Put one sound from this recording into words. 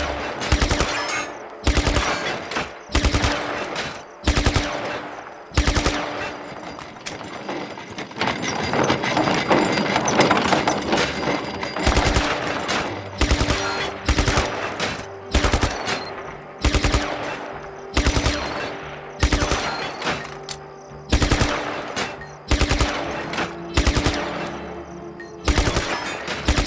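Gunshots crack one at a time with a short ringing echo.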